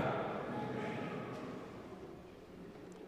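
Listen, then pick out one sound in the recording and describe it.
An elderly man speaks through a microphone in a large echoing hall.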